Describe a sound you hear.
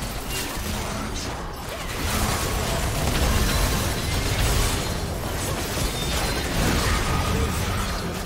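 Spell effects crackle and burst during a fight in a video game.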